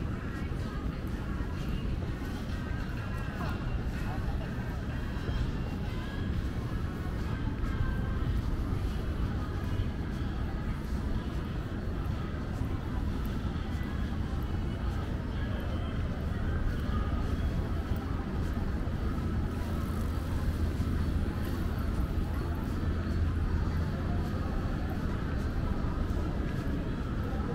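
A busy outdoor street hums steadily.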